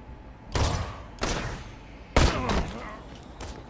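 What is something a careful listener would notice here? A rifle fires loud, booming shots that echo briefly.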